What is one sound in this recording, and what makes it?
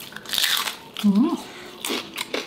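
A man hums with pleasure while chewing.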